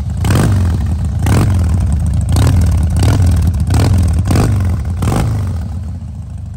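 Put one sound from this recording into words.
A motorcycle engine idles with a deep, uneven rumble close by.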